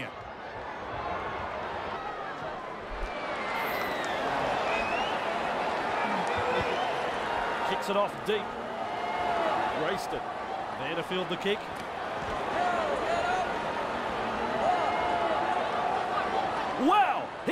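A large crowd roars and cheers steadily in an open stadium.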